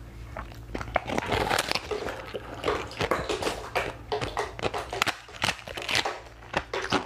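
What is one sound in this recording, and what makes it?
A young woman crunches and bites into a crisp, brittle shell close up.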